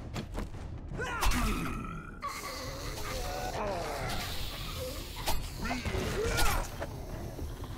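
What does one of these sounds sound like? A zombie growls and snarls close by.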